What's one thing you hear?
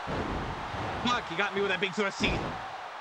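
A young man speaks with animation into a headset microphone.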